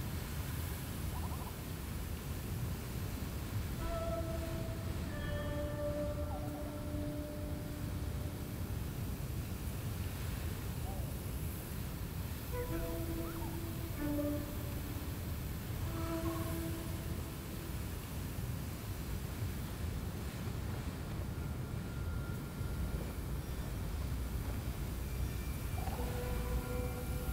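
Wind roars steadily in a low, gusty rumble.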